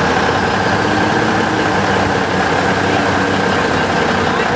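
A pickup truck engine revs.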